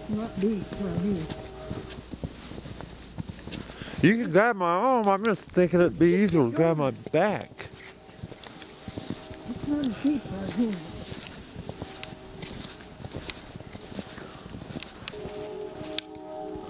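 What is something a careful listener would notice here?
Wind blows steadily outdoors during a snowfall.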